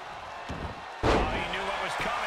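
A body slams heavily onto the wrestling ring mat.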